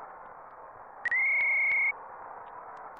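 A 16-bit console game beeps as a menu pops up.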